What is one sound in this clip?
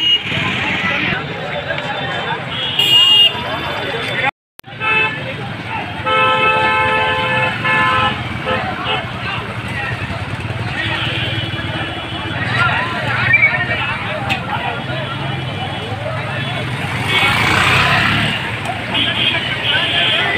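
A crowd of men talks and shouts outdoors.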